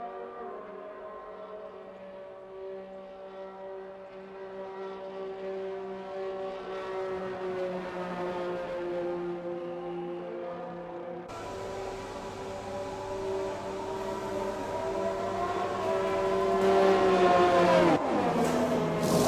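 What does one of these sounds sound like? A racing car engine whines loudly, rising and falling, then winds down as it stops.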